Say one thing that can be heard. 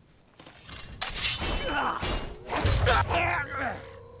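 A sword swings and strikes metal.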